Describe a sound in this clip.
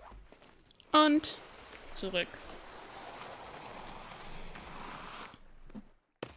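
A zip line whirs as someone slides down a cable.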